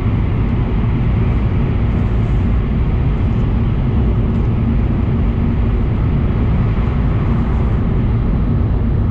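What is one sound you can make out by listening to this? A vehicle rumbles steadily from inside its cabin while moving.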